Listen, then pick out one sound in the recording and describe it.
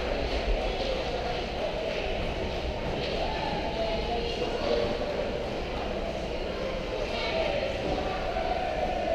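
Many people talk at a distance in a large echoing hall.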